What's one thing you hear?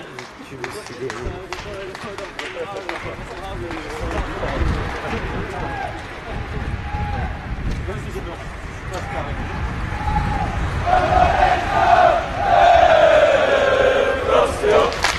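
A group of young men talk as they walk outdoors.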